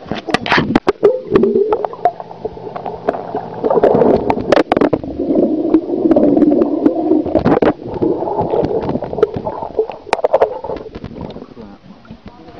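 Water bubbles and churns, muffled as if heard underwater.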